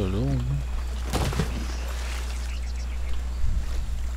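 A wooden chest thuds onto sand.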